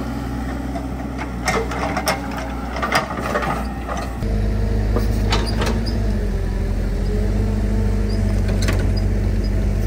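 Mud and clods thud and clank as an excavator bucket digs.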